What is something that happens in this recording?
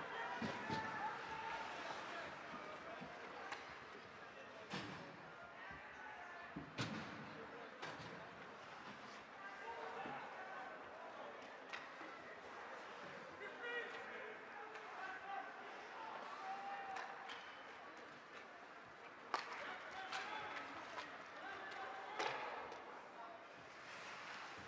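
Spectators chatter and call out in an echoing rink.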